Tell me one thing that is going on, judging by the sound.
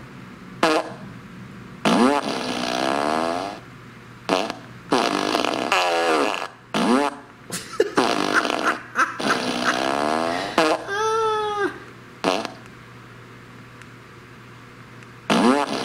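A small loudspeaker blares a series of fart sounds, some short and some long and rattling.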